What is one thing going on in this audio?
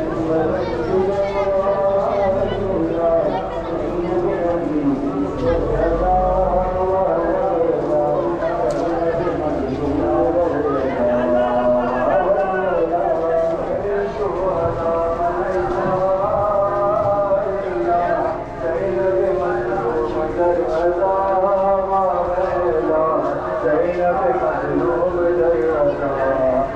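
A crowd of men chants together loudly outdoors.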